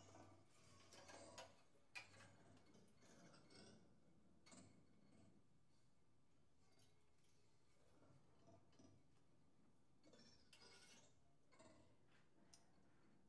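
Metal valves click and rattle on a tuba.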